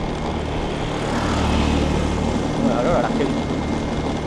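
Another motorbike passes close by.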